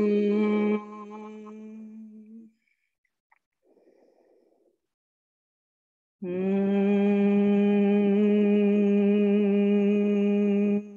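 A woman hums a long, steady low tone, heard through an online call.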